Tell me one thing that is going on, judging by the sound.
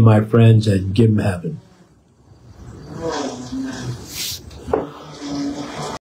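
An elderly man speaks calmly close to the microphone.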